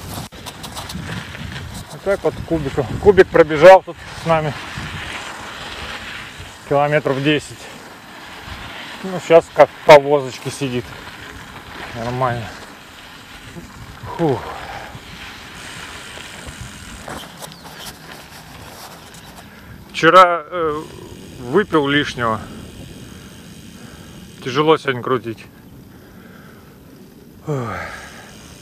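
Bicycle tyres roll and crunch over a gravel track.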